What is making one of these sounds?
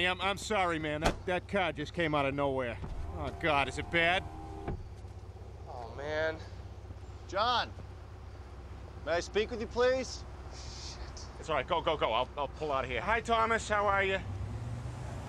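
A second man answers in a brash, raspy voice.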